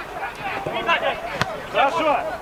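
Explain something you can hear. A football thuds off a player's foot.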